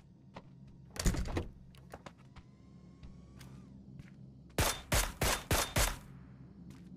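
Loud rifle shots ring out in quick bursts.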